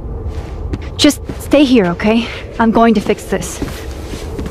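A young woman speaks softly and urgently.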